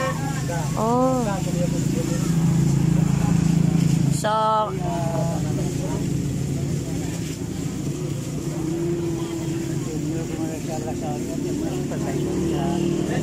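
A gas flame roars steadily.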